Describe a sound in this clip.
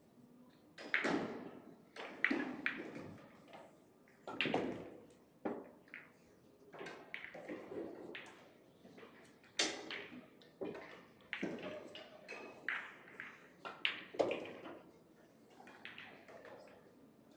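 Pool balls clack together as they are gathered and racked on a table.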